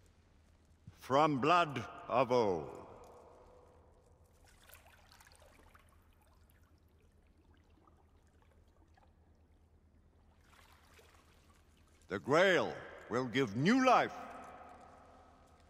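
An elderly man intones solemnly in a large echoing hall.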